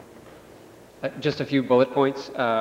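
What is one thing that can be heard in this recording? A second man speaks calmly into a microphone.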